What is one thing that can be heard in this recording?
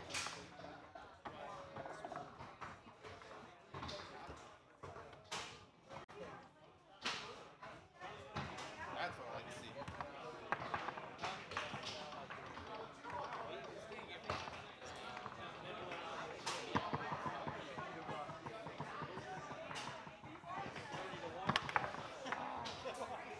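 Foosball rods rattle and spin in their sleeves.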